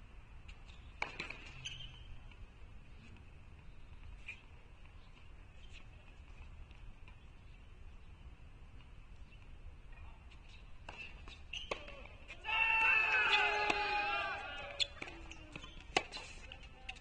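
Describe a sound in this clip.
A tennis ball is struck sharply by a racket.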